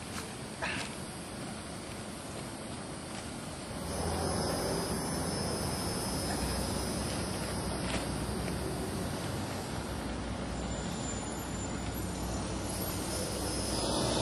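A man's shoes scrape against tree bark as he climbs.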